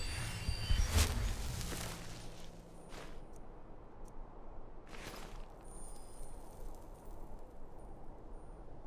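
A soft whoosh sounds as a game menu opens.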